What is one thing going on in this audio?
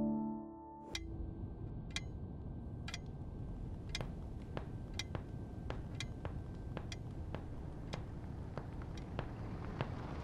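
A wall clock ticks steadily.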